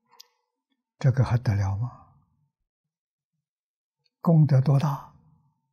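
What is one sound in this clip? An elderly man speaks with emphasis into a close microphone, in short phrases.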